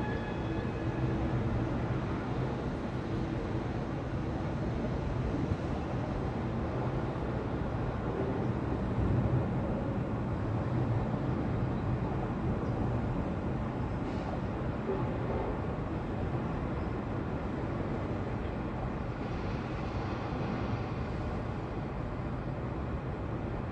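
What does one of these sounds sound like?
Distant harbour machinery rumbles low and steadily.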